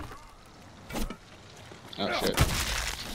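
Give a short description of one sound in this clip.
A heavy weapon thuds into a body.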